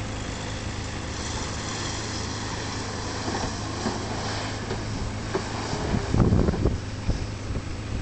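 Tyres spin and spray sand.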